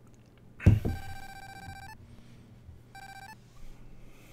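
A video game plays rapid high electronic beeps as bonus points count up.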